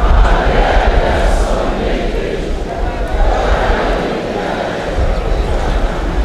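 A large outdoor crowd murmurs and chants together.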